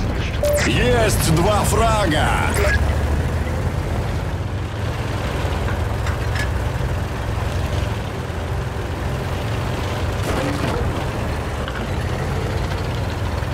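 A tank engine rumbles steadily and low.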